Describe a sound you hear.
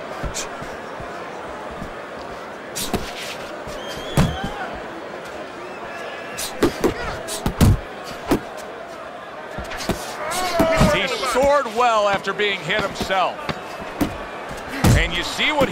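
A crowd murmurs steadily in a large hall.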